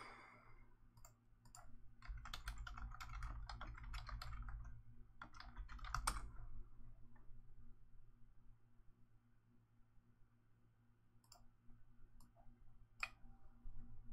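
Small parts click and rattle as they are handled.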